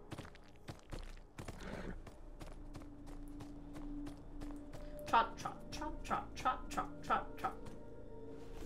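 Horse hooves clop on hard dirt.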